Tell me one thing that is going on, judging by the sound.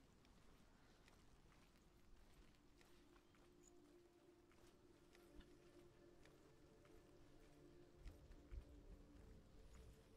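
Footsteps crunch softly on a dirt path.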